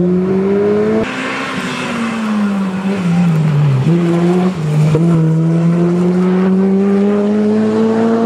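A rally car engine revs and shifts gears while the car races along a gravel road.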